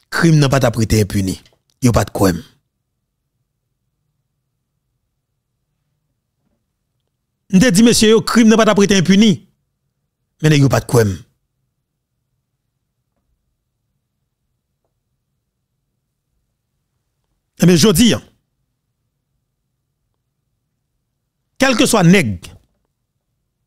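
A man speaks into a close microphone in short bursts with long pauses.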